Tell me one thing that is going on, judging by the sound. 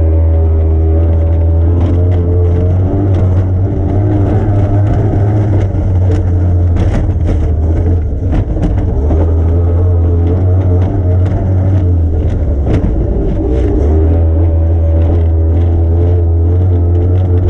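A powerboat engine roars loudly and steadily.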